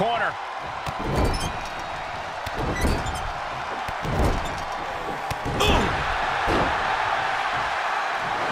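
Heavy bodies thud onto a wrestling ring mat.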